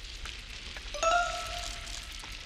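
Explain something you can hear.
A game's chime rings as an item is collected.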